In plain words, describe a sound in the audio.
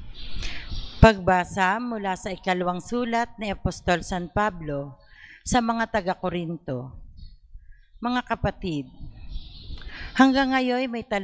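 A woman reads aloud calmly into a microphone.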